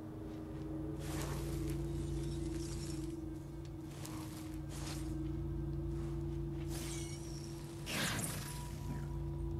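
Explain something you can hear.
Gunshots bang out one after another with a metallic ring.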